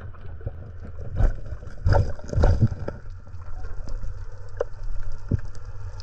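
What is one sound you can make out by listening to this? Water rumbles and swishes in a muffled way, heard from underwater.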